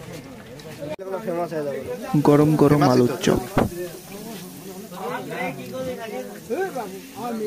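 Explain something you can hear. Hot oil sizzles steadily as food fries.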